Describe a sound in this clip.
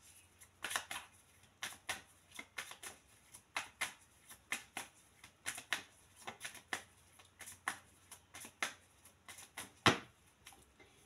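Playing cards flick and riffle as they are shuffled by hand.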